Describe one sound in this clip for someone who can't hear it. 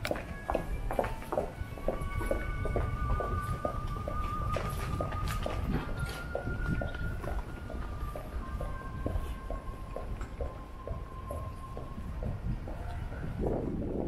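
Footsteps tap steadily on paving stones.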